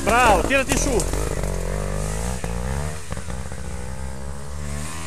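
A motorbike engine putters steadily at low speed.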